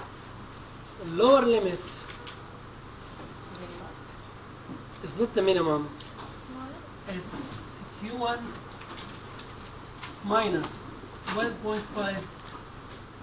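A middle-aged man speaks calmly in short phrases.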